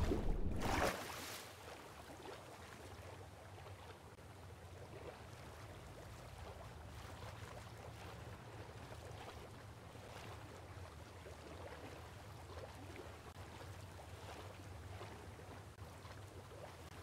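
Water laps softly as a swimmer paddles along the surface.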